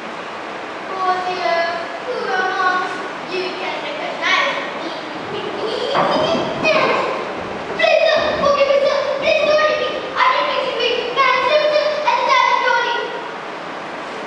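A young girl speaks loudly and clearly in a hall.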